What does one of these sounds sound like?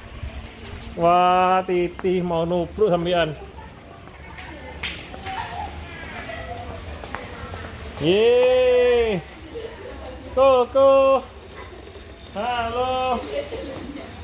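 A young child calls out loudly nearby.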